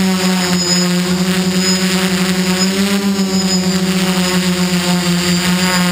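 Drone rotors buzz loudly and steadily close by.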